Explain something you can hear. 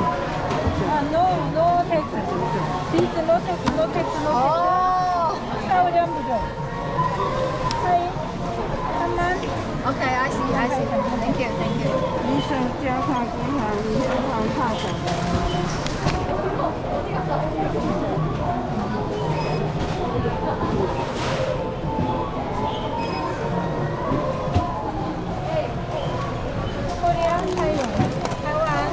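A busy indoor crowd murmurs.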